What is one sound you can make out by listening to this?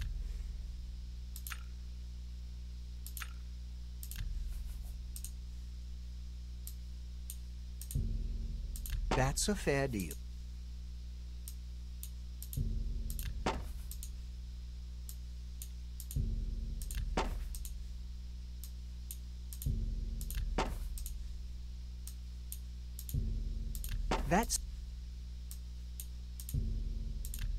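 Soft clicks tick again and again.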